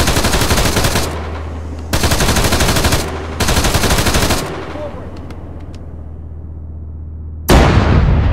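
A machine gun fires in loud, rapid bursts.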